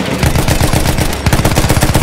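Explosions boom in the distance.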